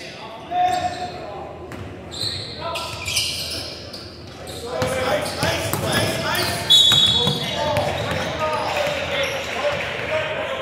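Young players shout and call out in a large echoing hall.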